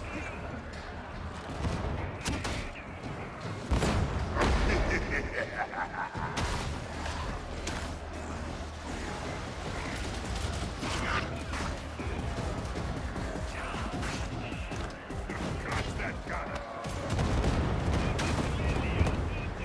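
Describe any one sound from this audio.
Rapid gunfire rattles and booms.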